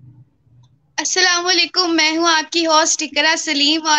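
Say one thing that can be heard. A young woman sings loudly over an online call.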